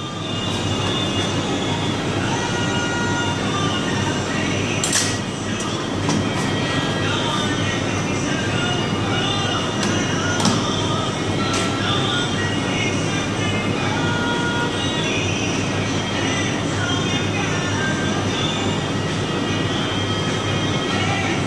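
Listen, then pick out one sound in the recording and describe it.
A knife taps and scrapes against bone.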